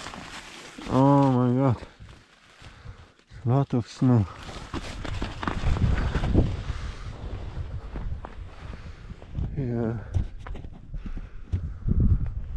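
Snow crunches and shuffles close by.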